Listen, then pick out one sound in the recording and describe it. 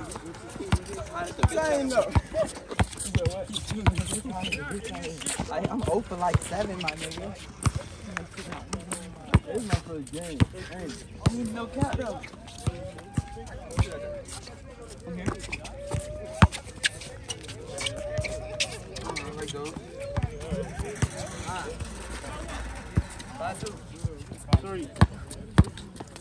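Young men shout and talk with animation outdoors.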